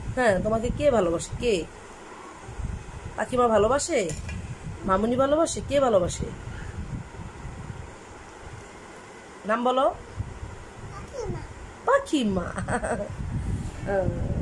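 A small child talks in short, high-pitched bursts close by.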